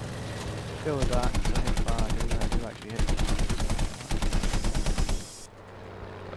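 A plane's machine guns fire in rapid bursts.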